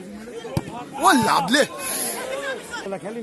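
A crowd of men cheers loudly.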